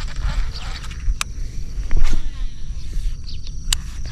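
A fishing reel clicks and whirs as it is wound.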